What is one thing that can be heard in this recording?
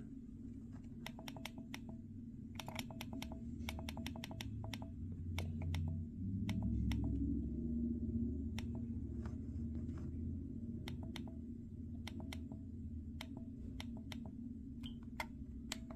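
A small device beeps softly with each quick button click.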